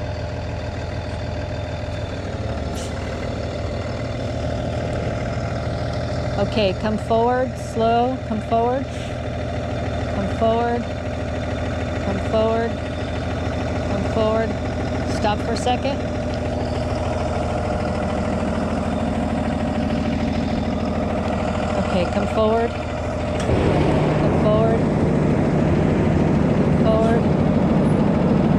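A large vehicle's engine idles with a steady low hum.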